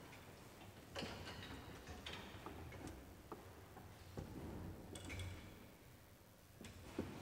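Wooden organ stops knock as they are pulled and pushed.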